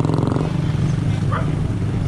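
A motorcycle engine rumbles as it rides past.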